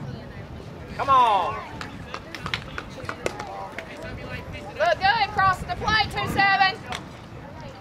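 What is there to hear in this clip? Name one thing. Young men shout and cheer outdoors.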